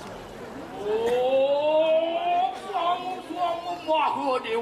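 A group of women sings together loudly.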